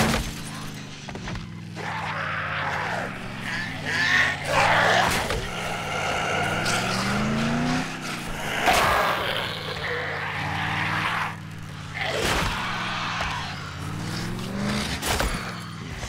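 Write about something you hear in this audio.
A car engine runs as the car drives along a rough dirt track.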